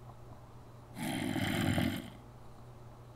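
A zombie groans low and raspy.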